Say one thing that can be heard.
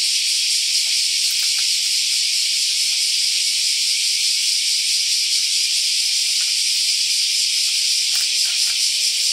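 A bicycle's tyres thump softly on rocks as the bicycle hops.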